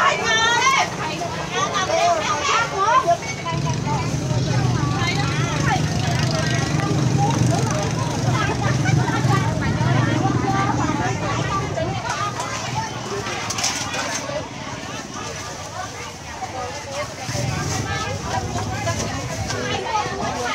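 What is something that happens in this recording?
A busy outdoor market hums with many voices chattering nearby.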